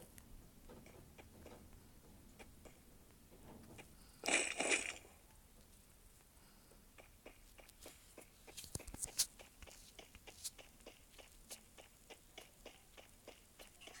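Quick footsteps patter across the ground.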